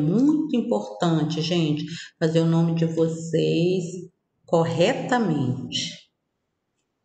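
A woman speaks clearly and with animation into a close microphone, over an online call.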